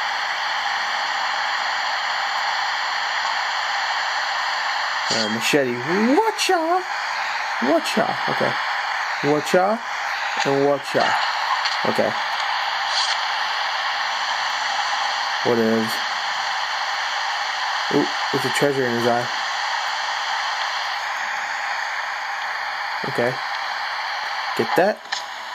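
A waterfall rushes steadily.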